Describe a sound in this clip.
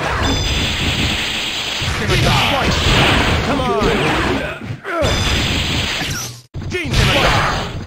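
Energy blasts whoosh and crackle in a video game.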